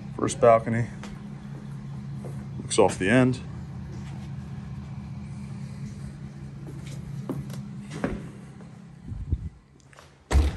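A truck engine idles with a steady low hum nearby.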